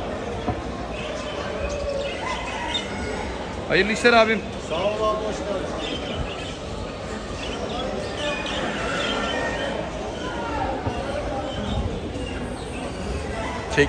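Men talk in a murmur in a large echoing hall.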